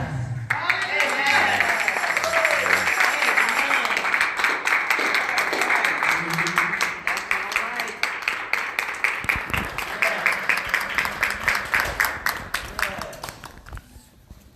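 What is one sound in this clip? A crowd claps loudly in rhythm.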